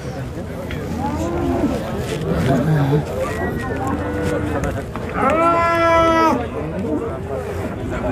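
A crowd of men talk and call out all around, outdoors.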